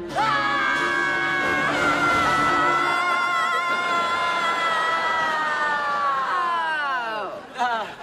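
A teenage boy screams loudly and at length.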